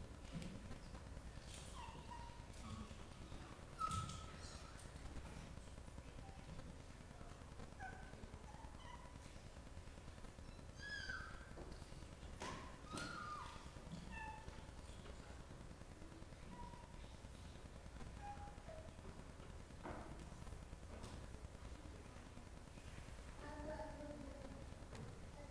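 A woman speaks quietly and slowly through a microphone in a large echoing hall.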